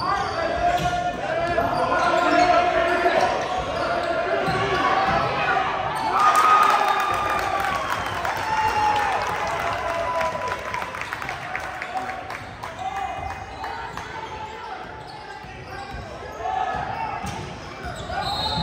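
A crowd cheers and shouts in a large echoing gym.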